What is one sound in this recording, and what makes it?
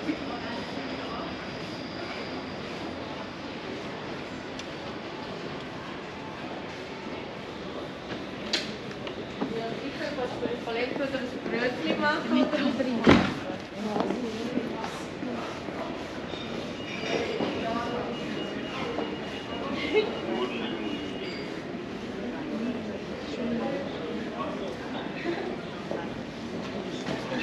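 Footsteps tap on cobblestones.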